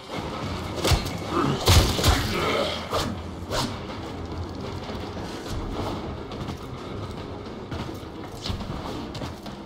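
A staff swings and strikes with sharp whooshing hits.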